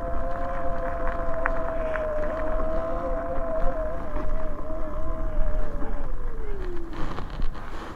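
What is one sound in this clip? An electric motor whines steadily, then drops in pitch and fades.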